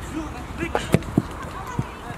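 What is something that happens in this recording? A football is kicked with a thump.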